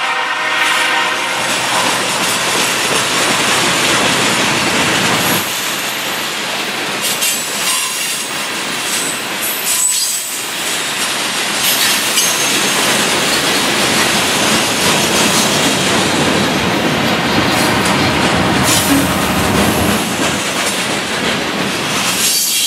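Freight car wheels clack over rail joints.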